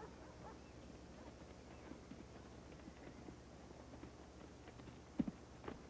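A crowd of people walks over grass with scattered footsteps and rustling.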